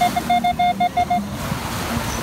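A metal detector beeps rapidly in short, high pulses.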